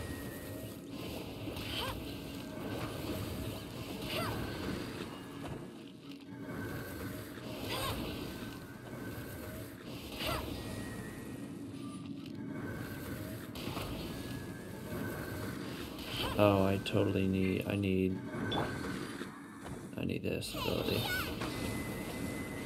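Game sound effects of bow shots and fiery bursts play.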